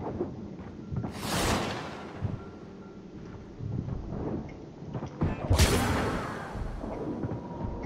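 A loud whoosh rushes past and fades.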